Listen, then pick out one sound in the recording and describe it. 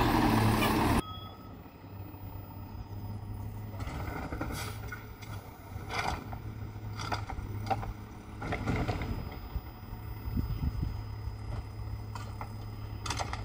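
A garbage truck's engine rumbles further off.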